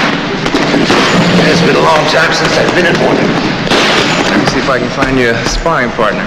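Gloved fists thump against a heavy punching bag.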